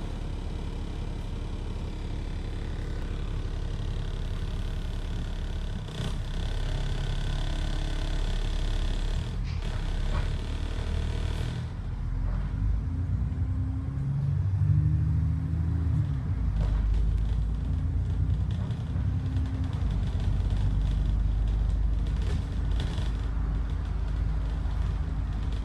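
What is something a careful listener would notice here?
A bus engine rumbles steadily from inside the bus.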